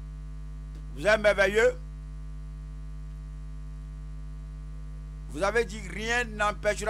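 A man speaks loudly and with animation through a microphone, in short bursts.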